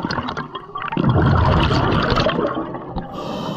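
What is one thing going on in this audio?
Air bubbles gurgle and rush underwater.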